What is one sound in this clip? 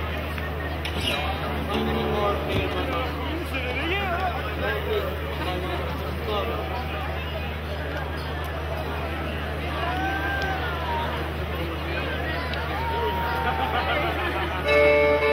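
A guitar strums along.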